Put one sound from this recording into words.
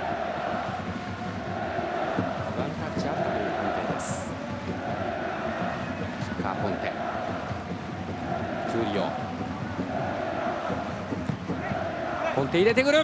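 A large stadium crowd chants rhythmically.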